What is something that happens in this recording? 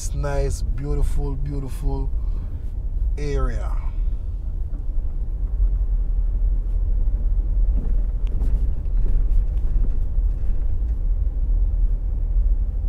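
Wind rumbles and buffets steadily as a vehicle drives along a road.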